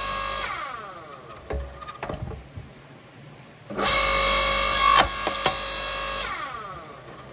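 An electric log splitter's motor hums and whines.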